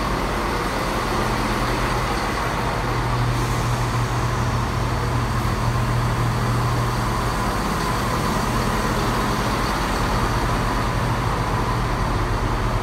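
A diesel train engine hums steadily and rumbles as the train pulls slowly out.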